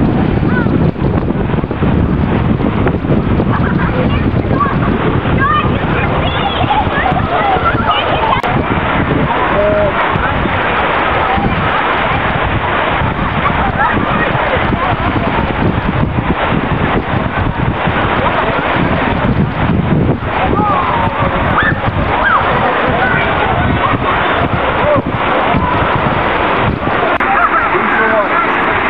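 Water rushes steadily down a rocky chute outdoors.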